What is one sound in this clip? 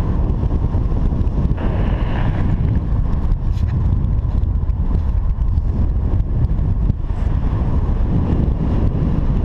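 Strong wind buffets and rumbles against a microphone.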